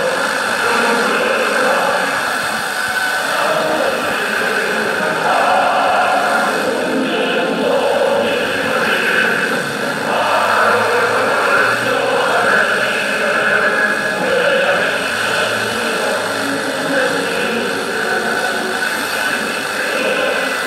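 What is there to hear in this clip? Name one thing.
A small radio plays a broadcast through a tinny loudspeaker.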